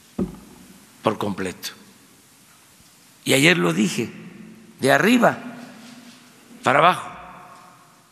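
An elderly man speaks slowly and deliberately into a microphone, with pauses, in a room with a slight echo.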